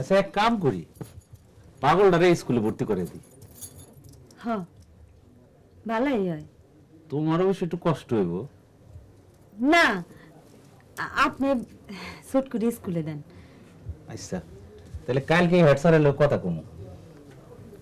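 A middle-aged man speaks, close by.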